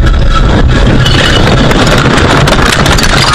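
A car crashes into deep snow with a loud rushing thud.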